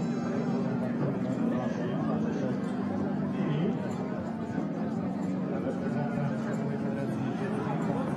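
A crowd murmurs at a distance across an open outdoor arena.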